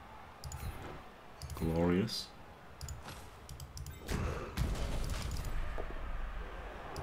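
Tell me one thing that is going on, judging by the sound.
A man speaks casually into a nearby microphone.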